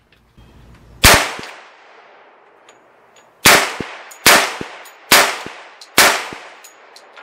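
A rifle fires loud single shots that echo outdoors.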